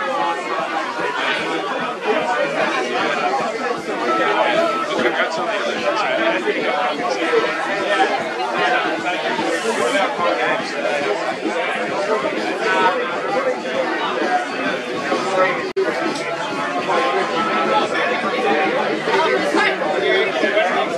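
A crowd of spectators chatters and calls out across an open field.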